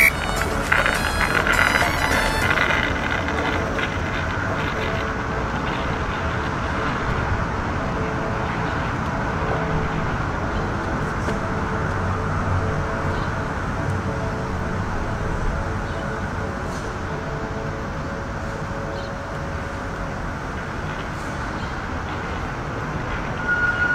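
Small hard wheels of an electric skateboard roll over asphalt.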